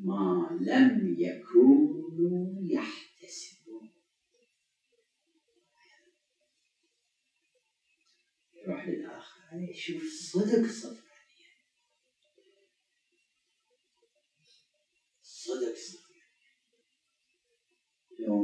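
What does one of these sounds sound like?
An elderly man speaks calmly into a microphone, pausing often.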